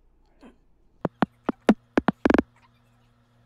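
Short electronic drum sounds play in quick succession.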